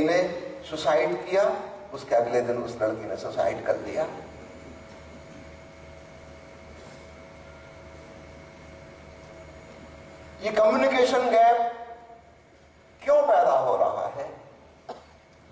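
An elderly man speaks calmly and deliberately into a microphone, with long pauses.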